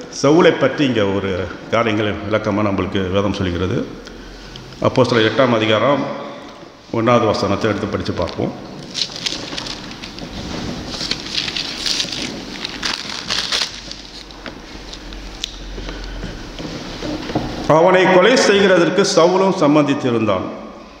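An elderly man speaks calmly through a microphone in an echoing hall, pausing often.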